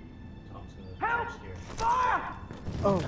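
A woman shouts for help in alarm.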